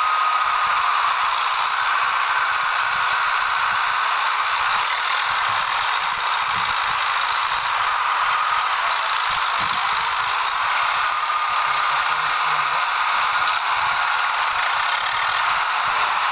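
A tractor engine roars and strains close by.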